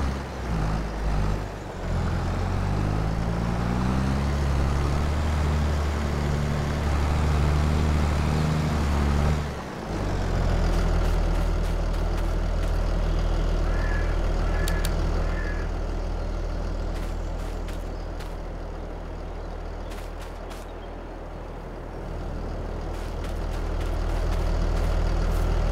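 A tractor engine hums steadily nearby.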